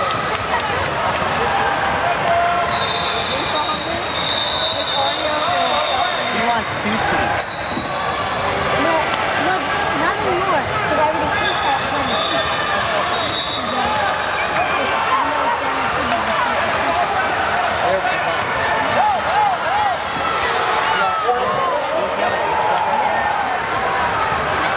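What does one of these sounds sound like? A crowd of voices chatters and calls out in a large echoing gym.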